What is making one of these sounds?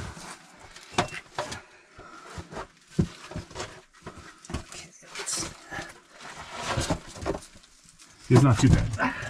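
A man's clothes and gloves scrape against rock as he squeezes through.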